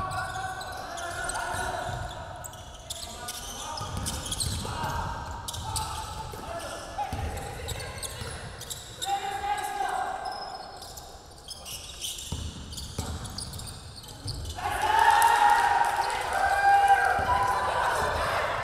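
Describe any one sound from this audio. A basketball bounces on a wooden floor in an echoing hall.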